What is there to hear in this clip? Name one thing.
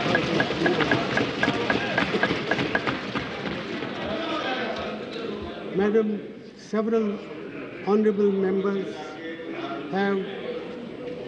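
A crowd of men murmurs and calls out in a large hall.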